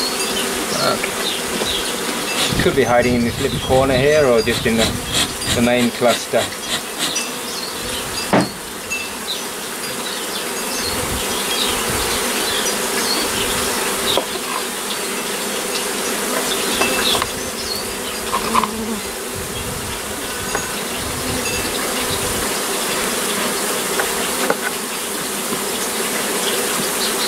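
Bees buzz steadily all around.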